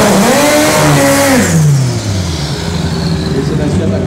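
Tyres screech in a burnout.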